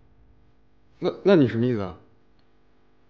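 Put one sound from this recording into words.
A middle-aged man asks a question in disbelief, close by.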